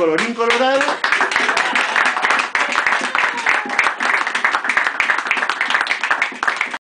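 A small group claps and applauds steadily.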